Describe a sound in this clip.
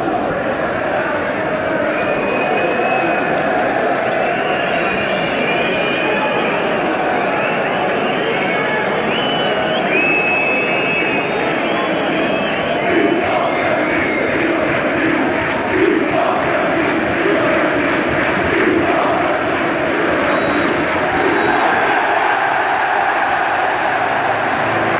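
A large stadium crowd roars and chants steadily all around.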